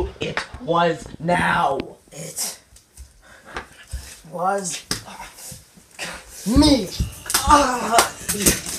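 A teenage boy groans and cries out up close.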